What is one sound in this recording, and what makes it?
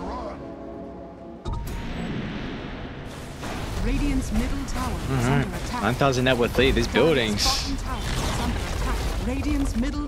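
Magic blasts crackle and whoosh during a fight.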